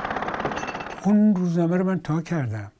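An elderly man speaks calmly and close.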